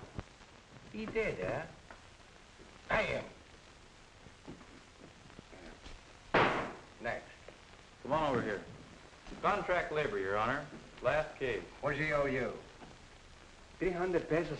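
An elderly man speaks gruffly and close by.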